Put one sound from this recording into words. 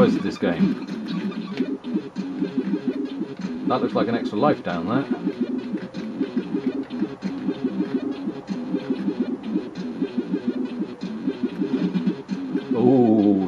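Chiptune game music plays with a bouncy melody.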